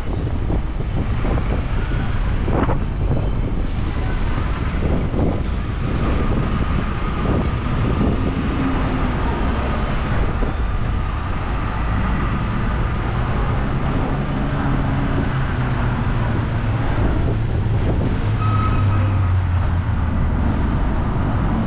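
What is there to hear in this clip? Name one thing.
A bus engine hums nearby.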